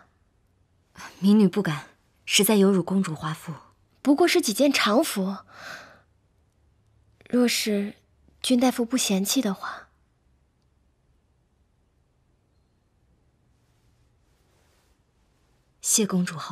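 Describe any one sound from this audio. A young woman speaks softly and politely.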